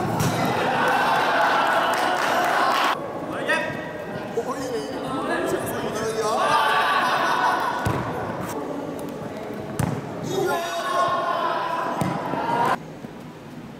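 A crowd of children shouts and cheers in a large echoing hall.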